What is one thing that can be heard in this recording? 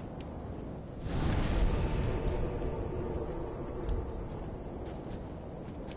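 A fire flares up with a whoosh and then crackles softly.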